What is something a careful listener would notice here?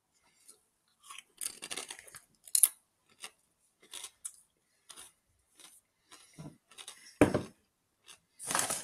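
A man crunches and chews a crisp snack.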